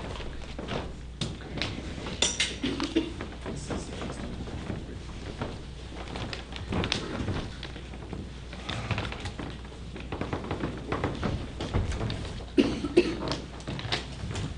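Chairs are shifted and knock lightly.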